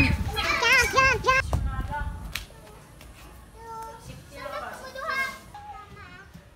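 Children chatter and call out while playing.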